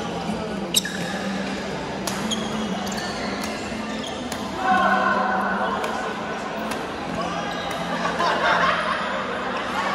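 Badminton rackets strike shuttlecocks with sharp pops.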